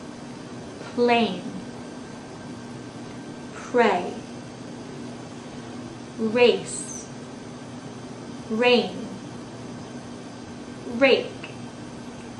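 A young woman speaks short single words close by, with long pauses between them.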